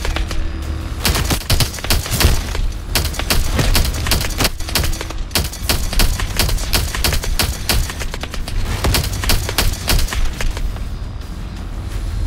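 A low engine rumbles steadily.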